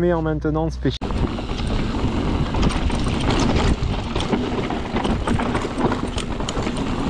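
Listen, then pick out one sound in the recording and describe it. Bicycle tyres rumble and rattle over a dirt trail.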